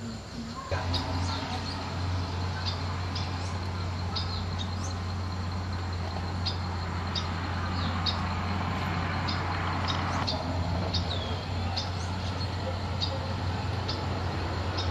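Leafy branches rustle as a woman picks fruit from a bush.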